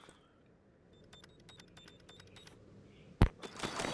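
An electronic device beeps rapidly.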